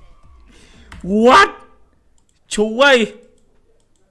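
A young man exclaims loudly and excitedly close to a microphone.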